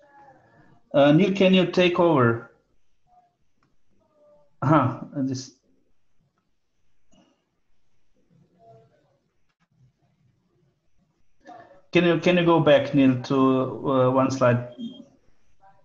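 A man speaks calmly in short phrases over an online call, with long pauses.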